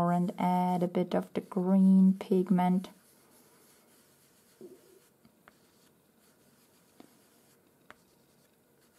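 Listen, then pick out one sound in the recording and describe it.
A pastel stick scratches softly on paper.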